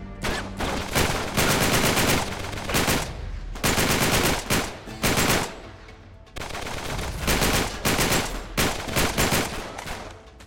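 Rapid bursts of automatic gunfire ring out.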